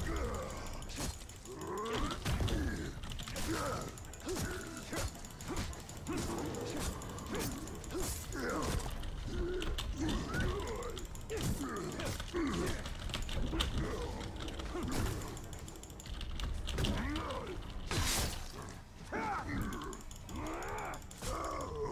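Swords clang in quick blows.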